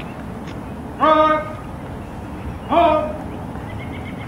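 A man barks loud drawn-out commands outdoors.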